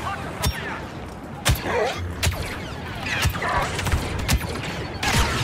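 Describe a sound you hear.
Laser blasts fire in quick sharp bursts.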